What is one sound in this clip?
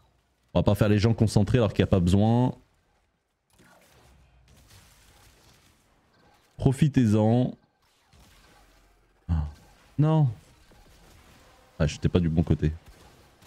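A man talks with animation close to a microphone, in bursts.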